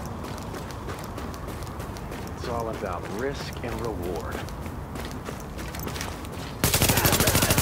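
Footsteps crunch on snow at a running pace.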